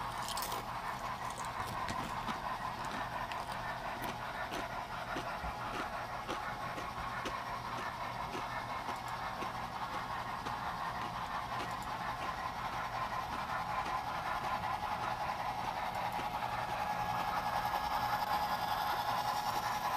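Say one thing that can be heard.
Small train wheels click over rail joints.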